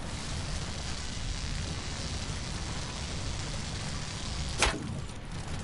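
An electric charge crackles and hisses steadily.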